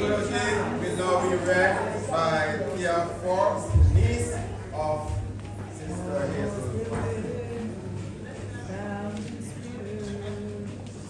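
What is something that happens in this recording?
A group of people sing together in a room.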